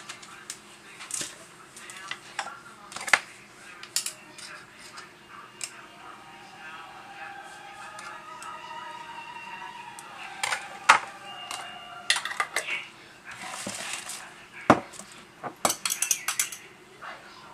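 A spoon clinks against a glass.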